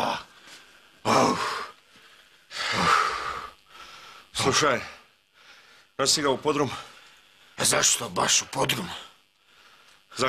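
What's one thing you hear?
A middle-aged man talks with animation nearby.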